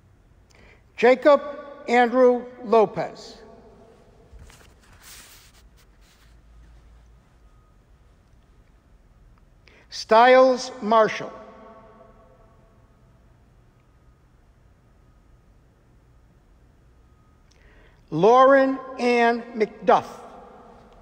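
A man reads out names clearly through a microphone, with short pauses between them.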